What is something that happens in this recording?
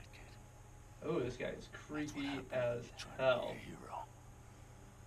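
An elderly man speaks menacingly up close.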